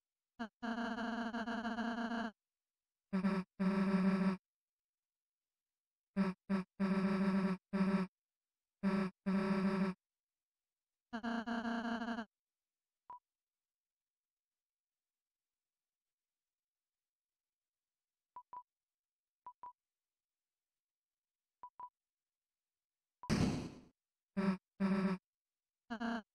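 Rapid game text blips chatter in short bursts.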